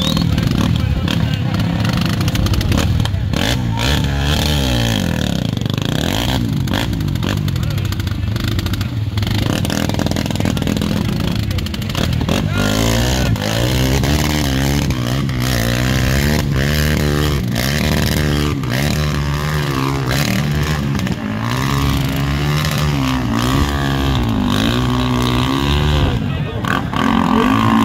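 A quad bike engine revs hard and labours through deep mud.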